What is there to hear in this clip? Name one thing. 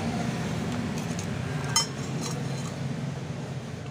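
A metal tool clicks against a metal disc.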